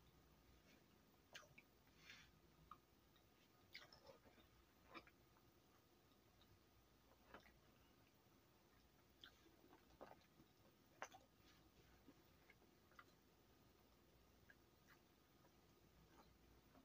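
Gloved hands squeeze and crumble soft powder, with faint crunching and rustling.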